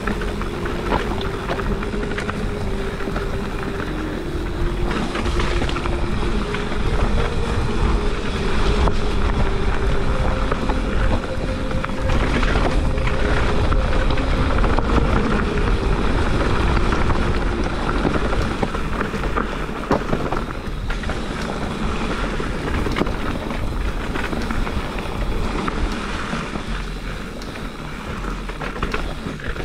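Bicycle tyres crunch and rattle over a dry leafy dirt trail.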